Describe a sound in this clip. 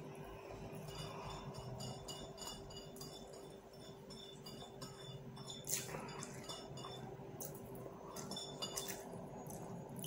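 A plate clinks lightly on a table.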